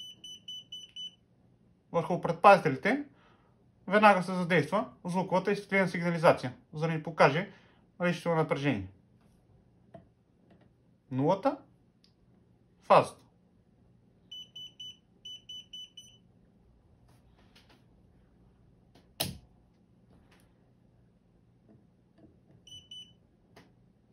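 A handheld voltage tester beeps in short, high pulses.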